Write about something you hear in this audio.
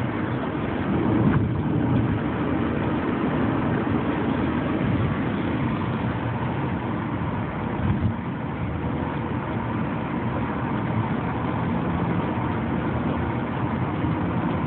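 A car engine hums steadily and tyres roll on the road, heard from inside the car.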